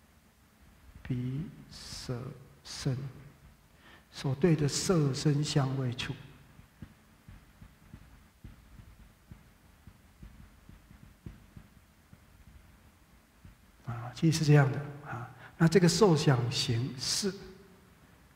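A man speaks calmly into a headset microphone, in short phrases with pauses.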